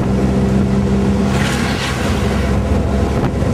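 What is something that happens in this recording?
Another vehicle passes by in the opposite direction.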